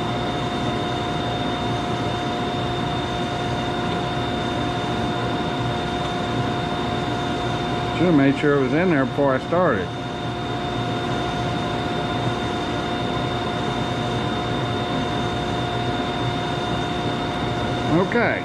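A band saw blade cuts through wood.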